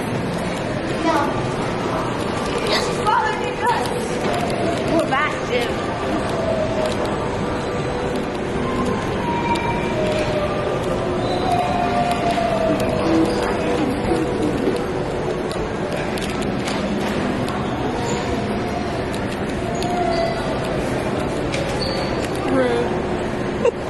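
A crowd murmurs in the background of a large echoing hall.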